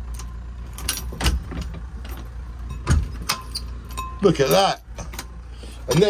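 A glass door slides and clunks open.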